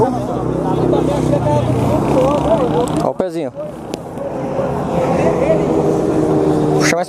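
Several men talk with each other outdoors.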